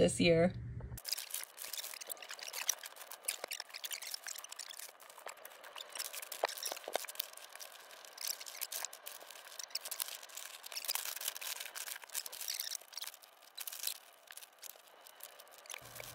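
Wrapping paper rustles and crinkles close by.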